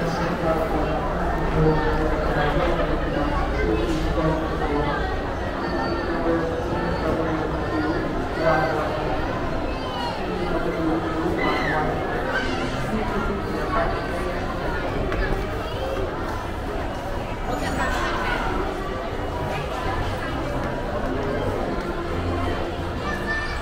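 Many voices of men, women and children chatter in a large echoing hall.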